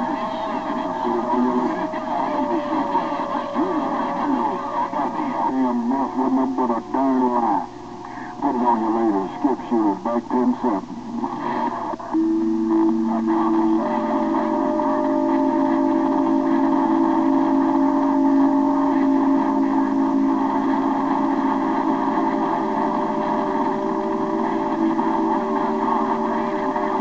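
A radio transceiver plays a received signal with static over its loudspeaker.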